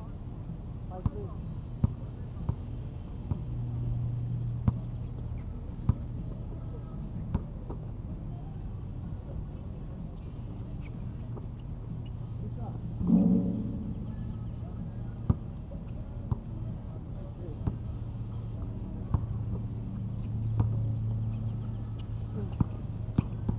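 A basketball bounces sharply on an outdoor court.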